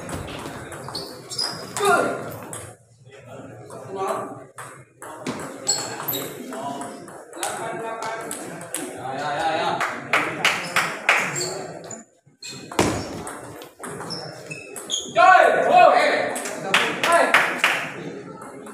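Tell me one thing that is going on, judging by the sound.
A table tennis ball clicks back and forth between paddles and a table.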